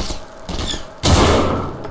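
A rifle fires a loud shot.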